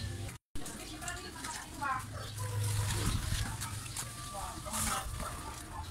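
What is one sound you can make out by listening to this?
Sandals slap on wet pavement.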